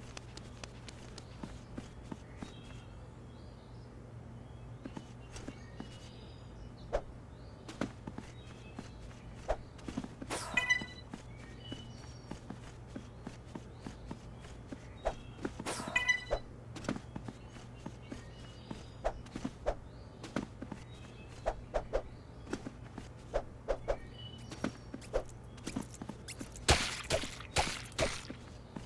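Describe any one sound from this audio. Quick light footsteps patter on hard ground.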